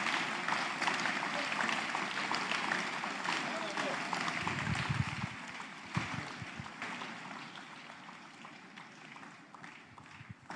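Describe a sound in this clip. A large crowd claps and cheers loudly, then slowly fades.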